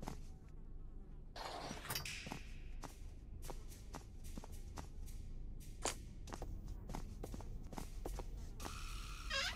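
Footsteps thud on a wooden floor at a steady pace.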